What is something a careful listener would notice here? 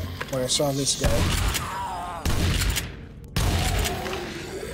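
A heavy gun fires loud, booming blasts.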